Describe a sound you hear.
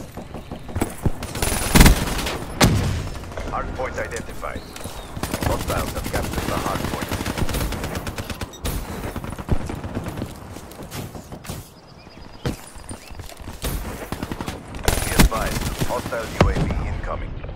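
A gun fires in loud, sharp bursts.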